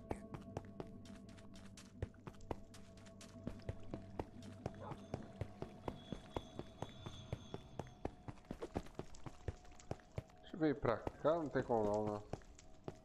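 Footsteps tap quickly and steadily on stone.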